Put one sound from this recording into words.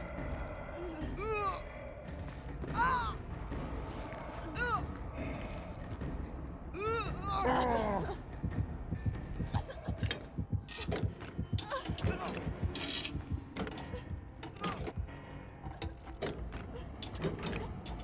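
Heavy footsteps thud on hard ground.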